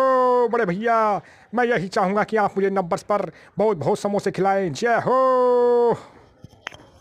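A young man sings with animation close to a microphone.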